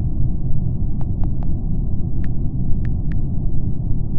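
Soft keyboard taps click in quick succession.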